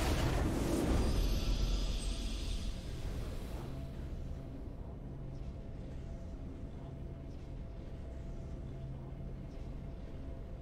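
A triumphant fanfare swells in the game's music.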